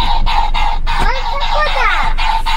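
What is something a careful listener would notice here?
A young child speaks close by.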